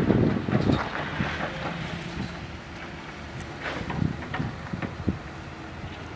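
Metal clanks and knocks sound now and then in the distance.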